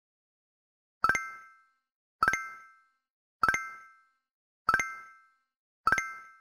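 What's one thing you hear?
A bright game chime rings each time a letter tile is picked, in an even rhythm.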